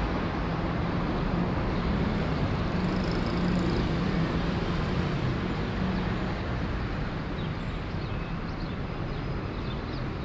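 City traffic hums in the distance.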